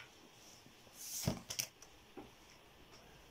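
Sheets of paper rustle and flap as they are handled.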